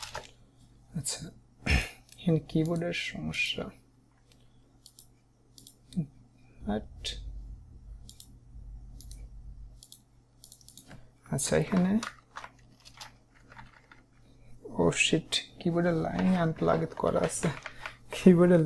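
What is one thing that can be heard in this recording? A young man talks calmly and close to a microphone.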